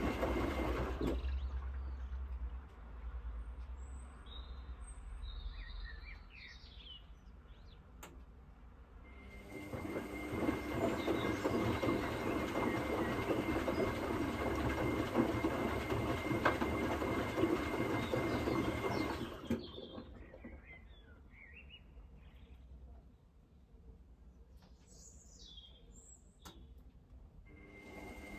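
A washing machine hums and rumbles steadily.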